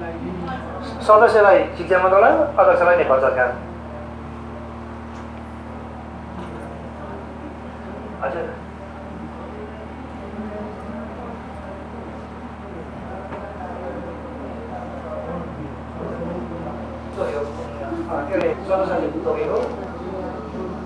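A man speaks loudly in a room with some echo.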